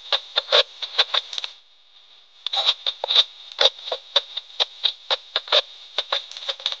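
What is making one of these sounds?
Chopsticks click and tap against a porcelain bowl.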